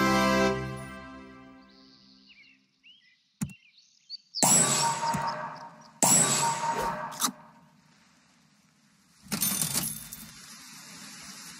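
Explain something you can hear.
A game's sound effects chime and whoosh in short bursts.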